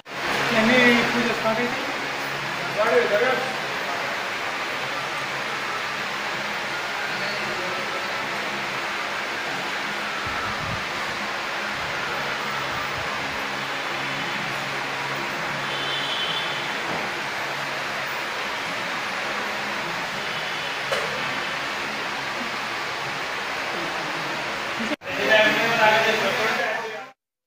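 A crowd of people murmurs indoors.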